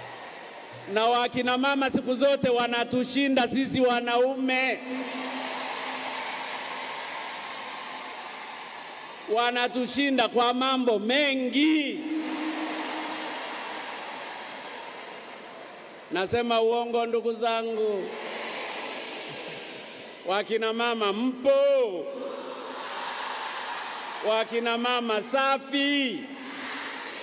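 A man shouts slogans through a loudspeaker in short bursts.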